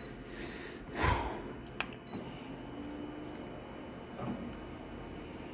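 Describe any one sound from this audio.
A copier whirs and clunks as it scans.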